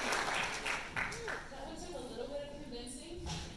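A woman speaks into a microphone over loudspeakers in a large hall.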